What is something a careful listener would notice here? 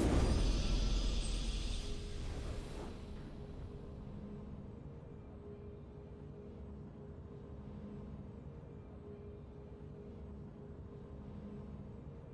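A triumphant game fanfare plays softly.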